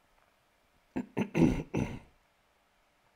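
A man sips tea with a few loud slurps.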